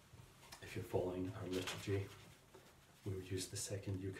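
Paper rustles as a middle-aged man handles a sheet.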